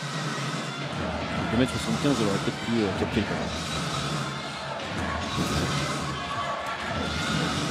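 Sneakers squeak on a hard indoor court.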